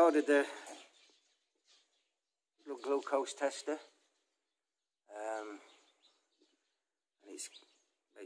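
An older man speaks slowly and expressively in short bursts close to the microphone.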